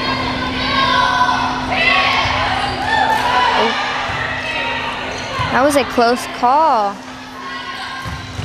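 A volleyball is hit with sharp slaps.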